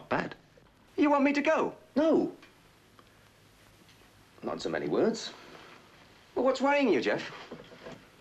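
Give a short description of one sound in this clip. A man speaks in an earnest, questioning tone nearby.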